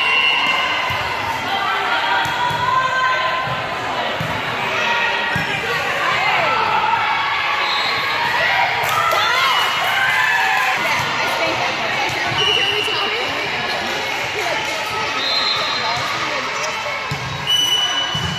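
Young women call out and shout across a large echoing hall.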